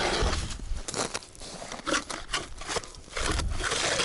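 An ice auger grinds and scrapes into snow and ice.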